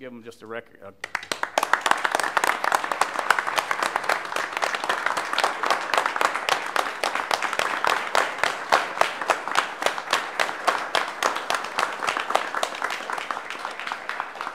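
A group of people applaud steadily.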